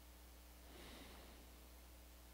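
A man breathes out softly close by.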